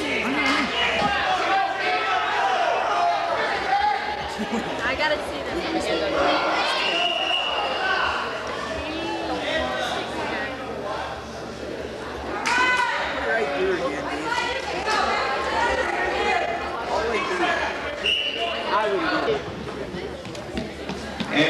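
A crowd chatters and calls out loudly in a large echoing gym.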